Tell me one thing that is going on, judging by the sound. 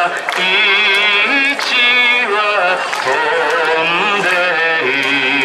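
A man sings into a microphone, his voice carried over loudspeakers outdoors.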